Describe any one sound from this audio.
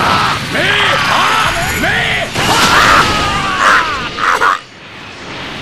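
An energy blast roars and explodes with a loud burst.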